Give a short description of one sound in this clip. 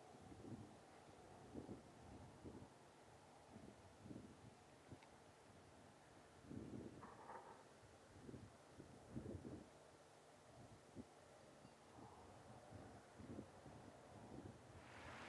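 A horse's hooves thud in a quick, even rhythm on packed snow.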